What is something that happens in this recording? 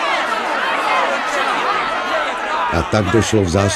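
A crowd of men and women shout and cheer excitedly nearby.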